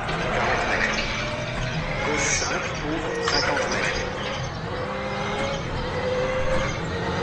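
A man talks with animation through a headset microphone.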